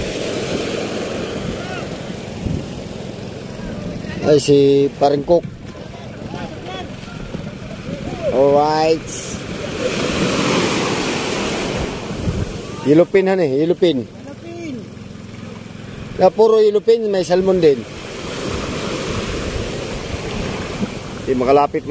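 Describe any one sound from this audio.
A man wades and splashes through shallow water.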